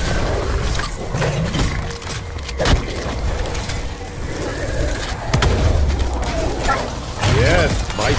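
A monster snarls and growls up close.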